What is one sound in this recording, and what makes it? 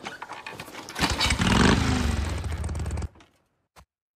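A motorcycle engine starts and revs loudly.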